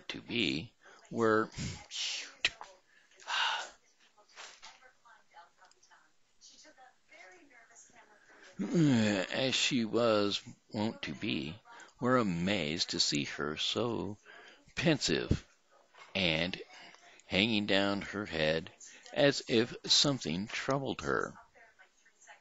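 An older man speaks calmly and close into a headset microphone.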